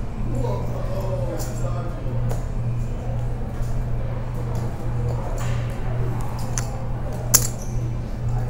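Poker chips click and clatter.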